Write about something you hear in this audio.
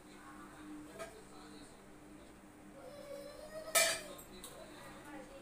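A metal utensil clinks against a steel bowl.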